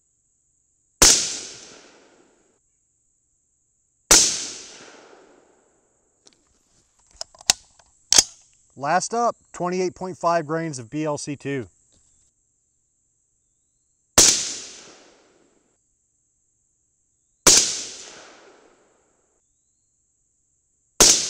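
A rifle fires loud single shots outdoors, each shot echoing and fading.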